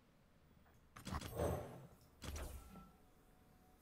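A game sound effect whooshes and booms as a card is played.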